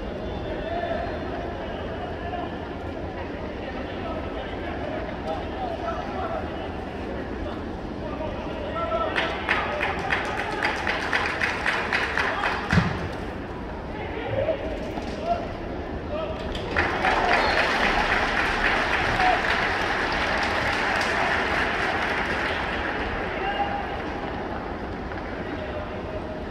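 A large stadium crowd murmurs and cheers.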